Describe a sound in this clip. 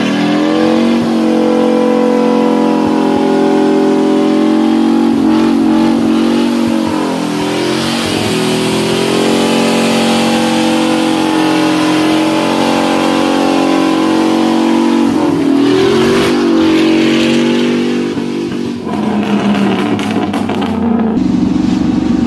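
A diesel truck engine roars loudly at high revs.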